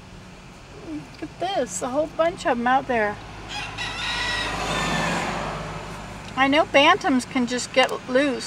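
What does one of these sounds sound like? Chickens cluck in the open air.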